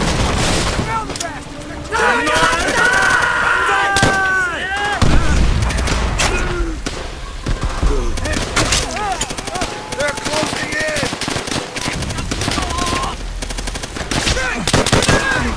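Men shout urgently nearby.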